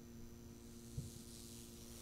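Electric sparks crackle briefly.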